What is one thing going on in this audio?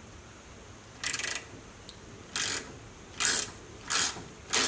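A ratchet wrench clicks in quick short bursts.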